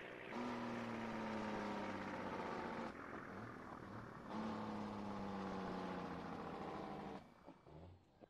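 A truck engine rumbles steadily, then eases off as the truck slows.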